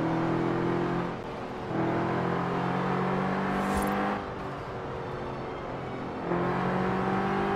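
Tyres roar on a road.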